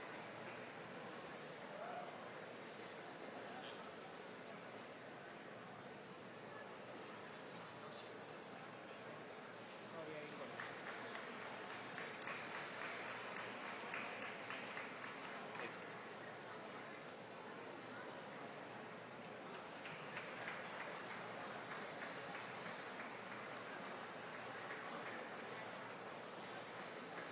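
A crowd murmurs in a large indoor hall.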